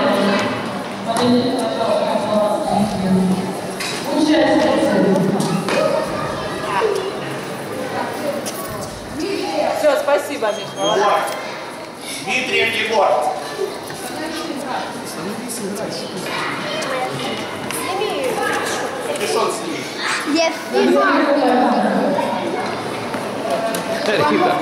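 A tennis racket hits a ball.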